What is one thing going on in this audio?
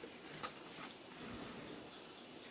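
A young boy blows softly on a fire.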